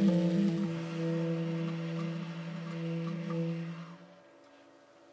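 A clarinet plays a melody.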